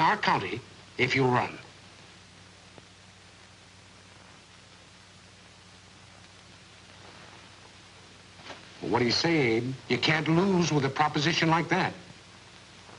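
A middle-aged man speaks in a low, confiding voice, close by.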